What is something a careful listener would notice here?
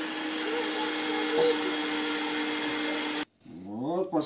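An electric juicer whirs steadily.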